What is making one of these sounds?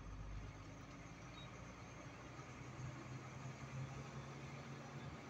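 A truck engine drones steadily from inside the cab.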